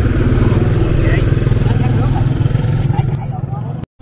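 A motorbike engine hums as it approaches.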